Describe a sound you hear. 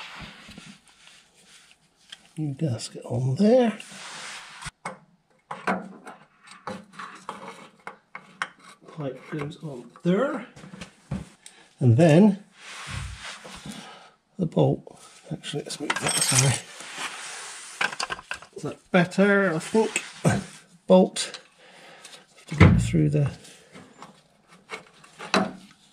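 Metal clinks faintly as a hand turns a bolt.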